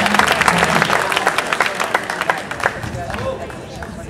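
An audience claps and applauds in an open outdoor space.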